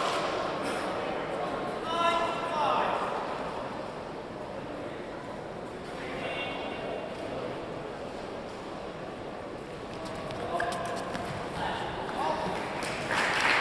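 Rackets strike a shuttlecock in a large echoing hall.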